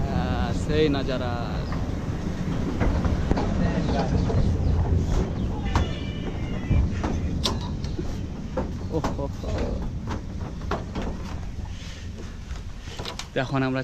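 A young man talks cheerfully close by.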